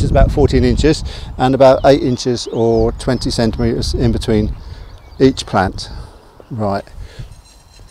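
A middle-aged man talks calmly outdoors.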